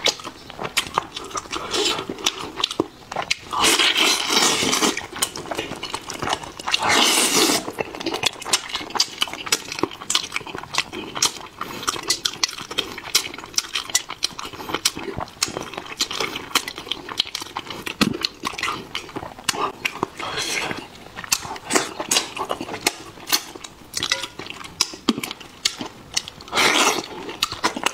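A man chews and smacks his lips loudly close to a microphone.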